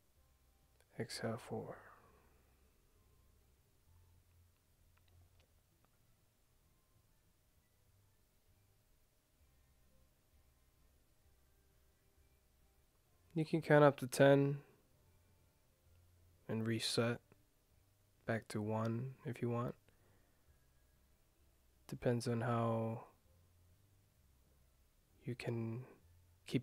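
A young man speaks softly and slowly into a close microphone, with long pauses.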